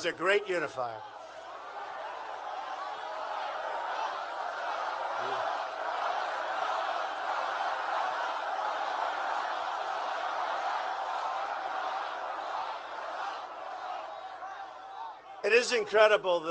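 A large crowd chants and cheers in a big echoing space.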